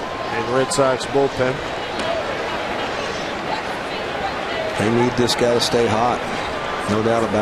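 A baseball smacks into a leather glove.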